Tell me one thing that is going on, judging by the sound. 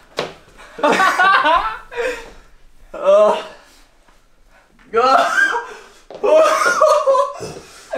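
A second young man laughs and talks nearby.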